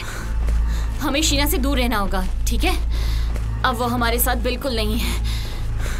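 A young woman speaks tensely nearby.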